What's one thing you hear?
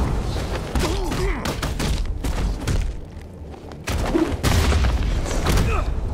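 Heavy punches and kicks thud against bodies in a fast brawl.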